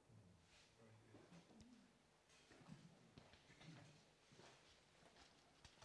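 A woman speaks quietly into a microphone, heard faintly through a loudspeaker.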